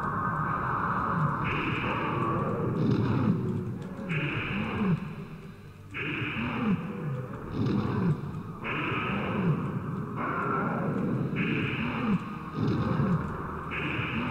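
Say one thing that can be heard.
A large creature growls and hisses repeatedly.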